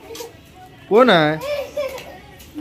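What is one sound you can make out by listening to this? A small child squeals loudly close by.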